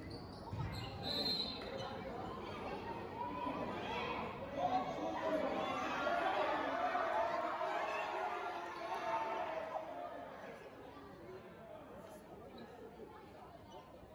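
Voices of players and spectators echo through a large hall.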